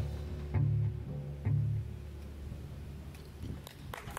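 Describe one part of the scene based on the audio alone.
A trombone plays low notes.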